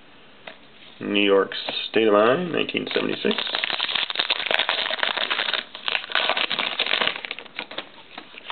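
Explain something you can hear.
A foil card wrapper crinkles and tears close by.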